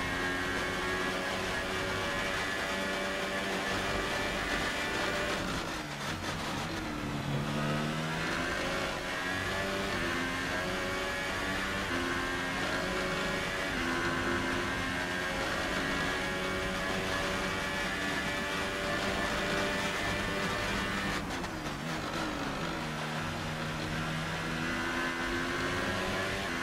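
A racing car engine screams at high revs, dropping sharply when braking and climbing again through the gears.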